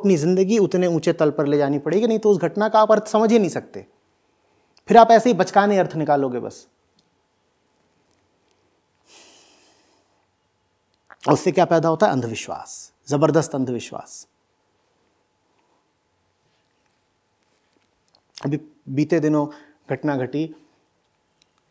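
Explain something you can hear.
A middle-aged man speaks calmly and with emphasis into a close microphone, with long pauses.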